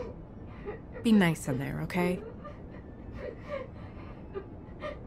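A woman speaks softly and anxiously.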